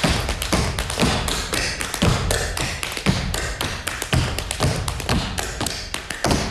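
Tap shoes click and clatter rapidly on a wooden stage.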